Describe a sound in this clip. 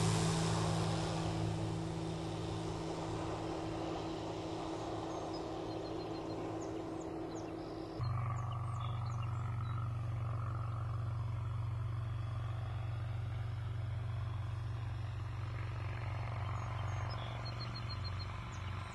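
A small propeller plane's engine drones steadily as the plane flies in low and lands.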